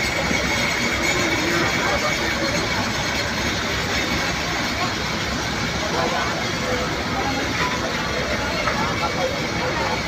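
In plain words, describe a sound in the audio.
A crowd of people talks and shouts excitedly nearby.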